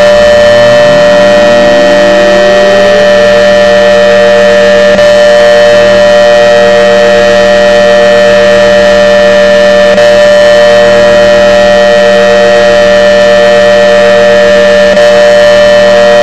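A loud siren winds up and then wails at a steady pitch.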